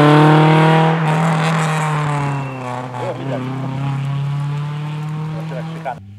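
A car engine fades into the distance.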